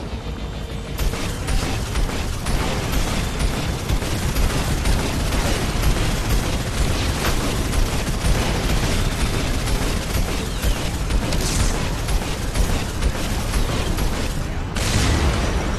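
Gunfire and explosions crackle ahead.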